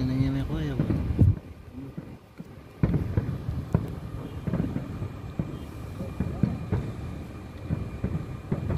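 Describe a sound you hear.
Fireworks bang and crackle outdoors in rapid bursts.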